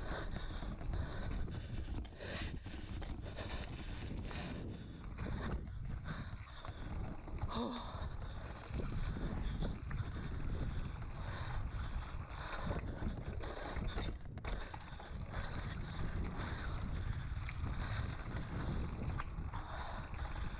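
Bicycle tyres roll and crunch over rough rock and gravel.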